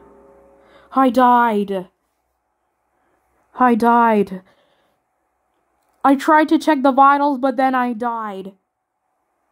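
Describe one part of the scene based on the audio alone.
A boy speaks with animation into a microphone, in short bursts.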